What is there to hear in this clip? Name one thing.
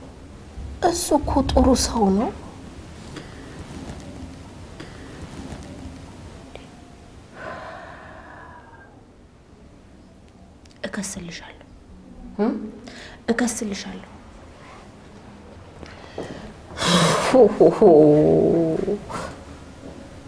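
A middle-aged woman speaks with animation, close by.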